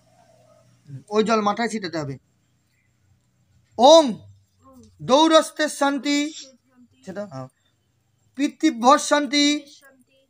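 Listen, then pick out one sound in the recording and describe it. A young boy chants loudly and clearly close by.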